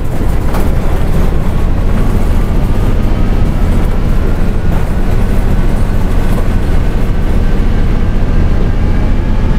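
A bus engine rumbles steadily as the bus drives along.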